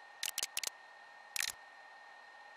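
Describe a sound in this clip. Menu clicks tick softly a few times.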